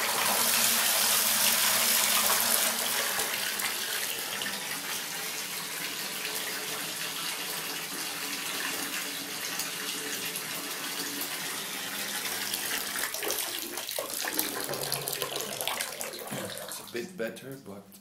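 Water pours from a tap into a filling bathtub with a steady rushing splash.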